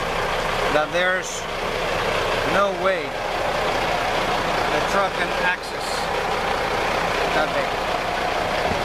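Rain patters steadily on the ground and the trucks.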